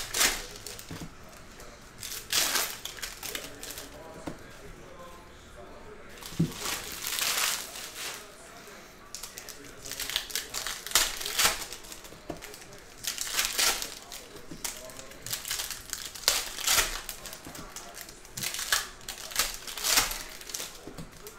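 Cards and foil wrappers rustle and crinkle close by.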